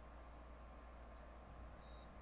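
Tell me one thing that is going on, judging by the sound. A game interface gives a short click.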